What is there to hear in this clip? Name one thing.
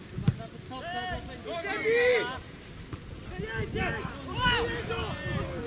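Young men shout and call to each other from a distance outdoors.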